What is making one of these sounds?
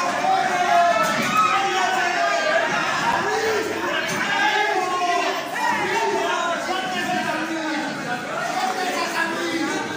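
A large crowd of men shouts and yells loudly in an echoing hall.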